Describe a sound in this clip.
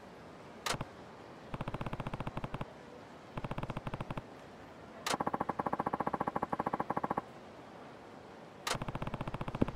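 Water laps gently against a stone wall.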